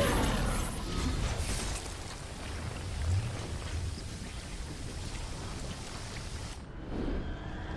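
A stream of magical energy roars and crackles.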